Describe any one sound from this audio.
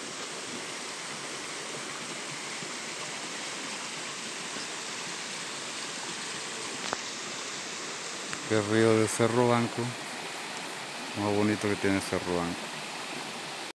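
A stream of water flows and ripples over rocks outdoors.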